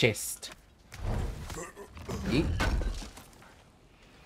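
A heavy chest lid thuds and grinds open.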